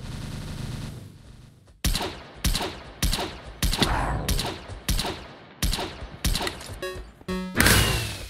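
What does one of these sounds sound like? Rapid blasts of weapons fire go off again and again.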